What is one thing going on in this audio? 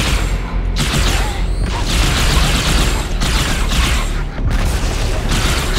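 Energy weapons fire in rapid bursts with crackling blasts.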